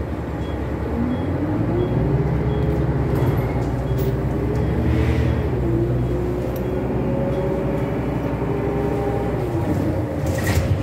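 A bus motor whines, rising in pitch as the bus speeds up and falling as it slows.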